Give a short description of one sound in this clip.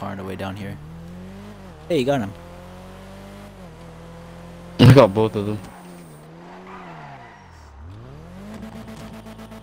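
A car engine hums steadily and rises and falls in pitch as the car drives.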